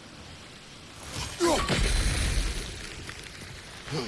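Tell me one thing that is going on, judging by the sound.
Water splashes and rushes loudly.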